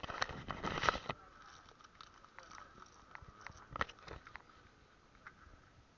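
Banknotes rustle close by.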